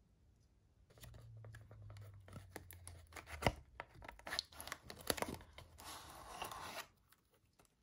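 A cardboard box flap is pulled open with a soft scrape.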